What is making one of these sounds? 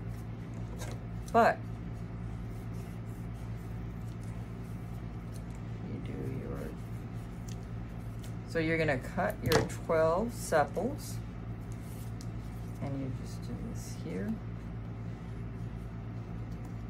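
Scissors snip through soft foam close by.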